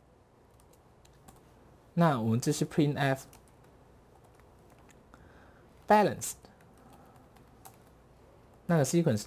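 Keys clatter softly as a man types on a keyboard.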